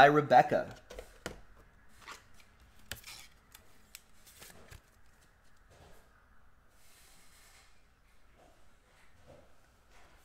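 Plastic card sleeves crinkle and tap as they are handled.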